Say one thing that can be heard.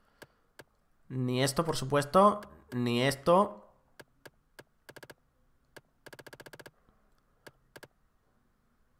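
Short electronic menu blips tick now and then.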